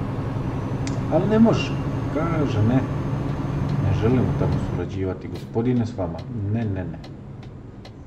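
A young man talks calmly and close to a microphone.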